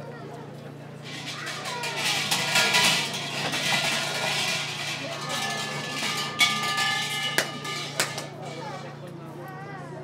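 Large hanging bells rattle and jingle as a rope shakes them.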